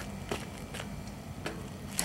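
A bicycle's tyres roll over asphalt.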